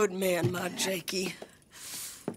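A man speaks in a low, sad voice close by.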